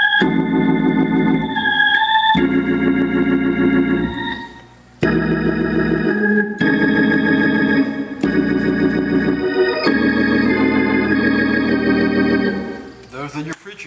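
An organ plays sustained chords.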